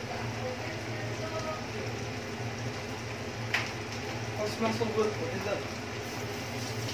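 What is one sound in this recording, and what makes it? Food sizzles and bubbles gently in a pan.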